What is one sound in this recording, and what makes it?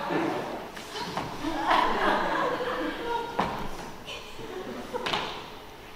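A young woman speaks with animation in an echoing hall.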